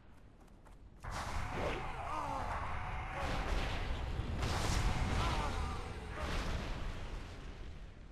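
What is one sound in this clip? Magic blasts burst with a loud whooshing crackle.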